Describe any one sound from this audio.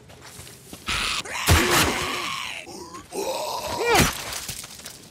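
A knife stabs into flesh with wet thuds.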